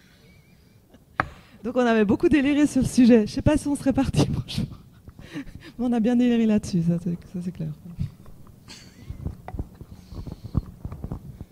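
Men laugh nearby.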